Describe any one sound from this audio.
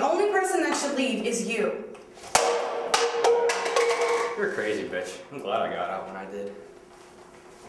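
A young woman speaks loudly and upset, close by.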